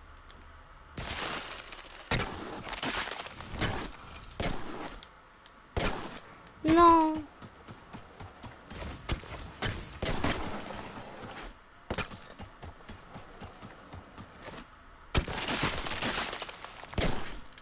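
A pickaxe strikes hard surfaces again and again.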